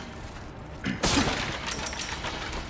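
A wooden crate smashes apart with a splintering crash.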